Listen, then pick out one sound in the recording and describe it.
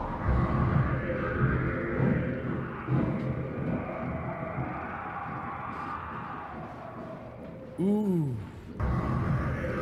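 A man speaks with surprise into a close microphone.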